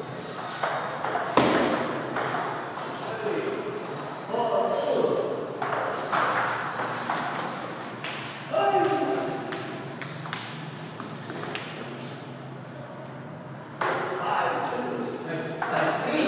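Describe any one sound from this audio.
Men talk and laugh nearby in an echoing room.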